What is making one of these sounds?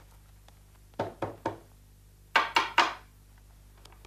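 A knocker raps on a wooden door.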